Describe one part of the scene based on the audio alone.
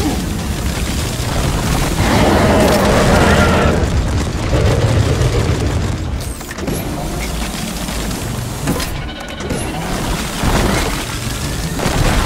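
A weapon sprays a hissing stream of frost in a game.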